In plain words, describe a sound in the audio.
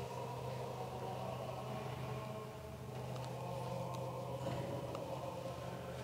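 Men chant together slowly in a large echoing hall.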